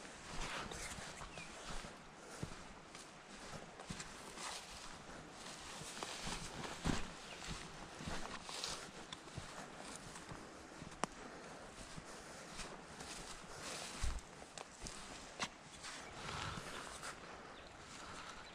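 Footsteps crunch on sand and dry grass.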